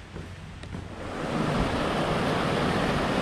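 A stream rushes over rocks nearby.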